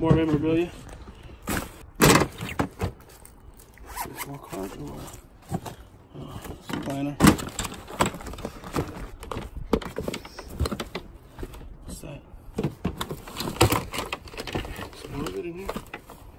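Items knock and clatter inside plastic crates.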